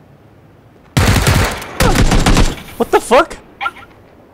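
Gunshots crack out in a fast burst.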